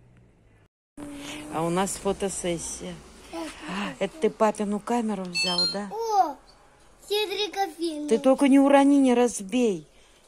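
A young child speaks close by in a high, animated voice.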